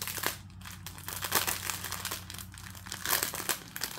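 A plastic package crinkles and rustles in hands.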